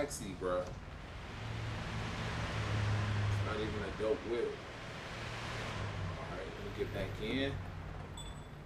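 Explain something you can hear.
A car engine idles with a low hum.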